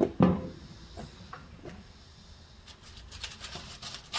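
A metal grill lid creaks and clanks as it is lifted open.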